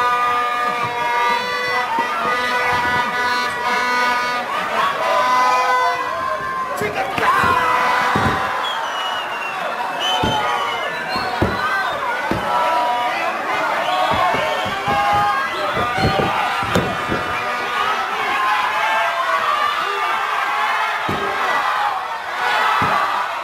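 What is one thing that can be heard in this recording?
A crowd shouts and cheers in a large room.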